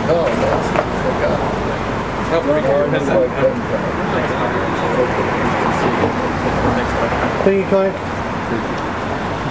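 An older man speaks cheerfully, close by.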